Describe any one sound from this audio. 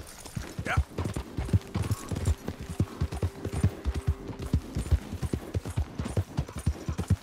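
Hooves gallop on a dirt track.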